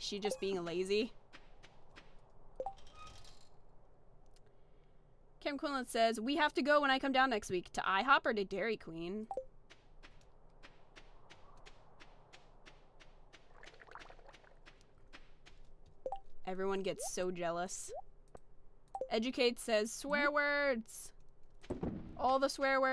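A young woman talks with animation into a microphone, close up.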